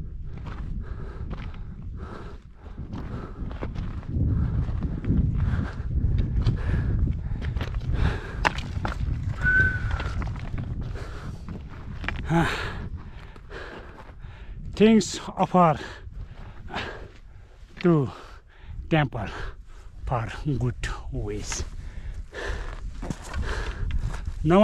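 Wind gusts and rumbles against a microphone outdoors.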